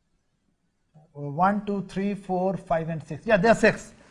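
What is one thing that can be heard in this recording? A man speaks calmly nearby, as if explaining.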